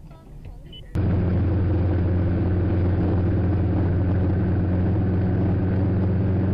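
A motorcycle engine drones loudly and steadily.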